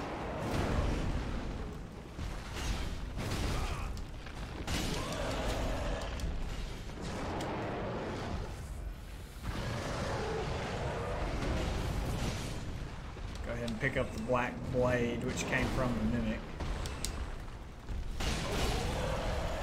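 Flames roar and crackle from a burning giant creature.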